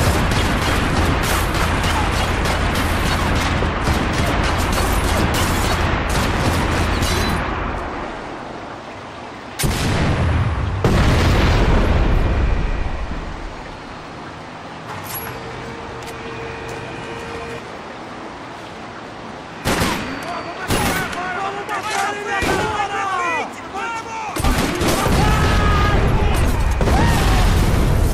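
Rapid gunfire crackles and rattles nearby.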